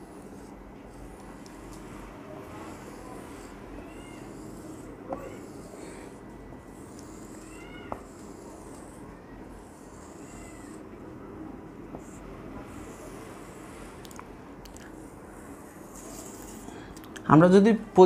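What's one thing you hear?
A marker squeaks and scratches in strokes across a whiteboard.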